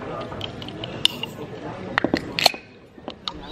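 A metal can clicks and clinks in a hand.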